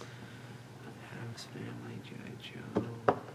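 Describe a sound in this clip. A young man talks quietly nearby.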